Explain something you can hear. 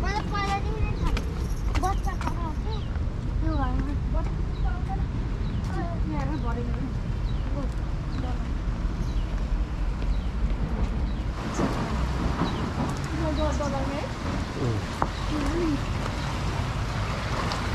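Footsteps scuff on a concrete path and steps.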